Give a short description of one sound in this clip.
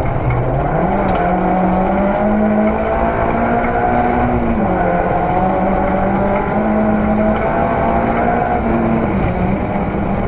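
Tyres rumble over a gravel road.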